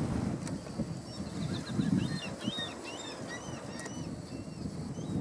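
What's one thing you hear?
A small bird chirps in quick, high twittering notes nearby.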